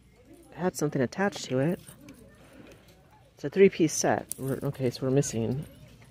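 Metal hangers click and scrape along a clothes rail.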